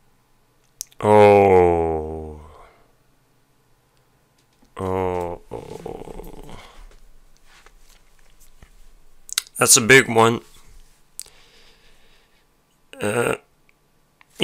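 A man sings loudly into a microphone in long held notes.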